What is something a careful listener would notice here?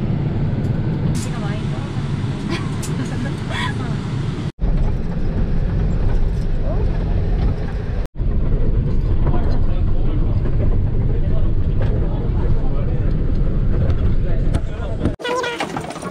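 A van engine rumbles steadily from inside the cabin.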